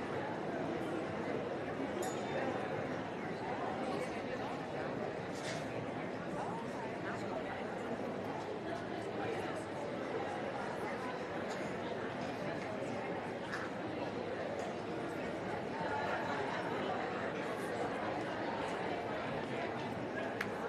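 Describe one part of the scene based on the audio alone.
A large indoor crowd murmurs steadily in an echoing hall.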